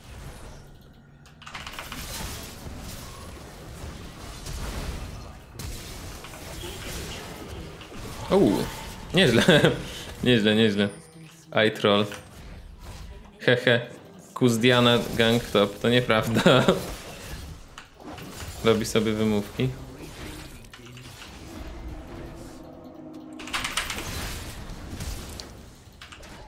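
Game sound effects of spells and hits play throughout.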